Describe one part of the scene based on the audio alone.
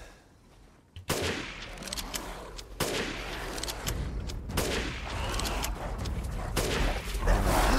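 A rifle fires loud shots several times.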